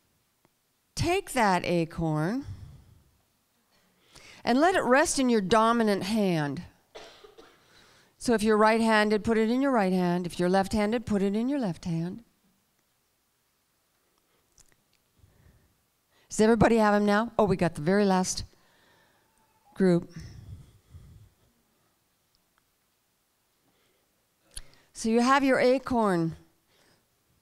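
A woman speaks calmly into a microphone in a large echoing hall, with pauses.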